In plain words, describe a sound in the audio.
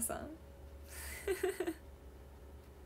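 A young woman laughs softly close to a microphone.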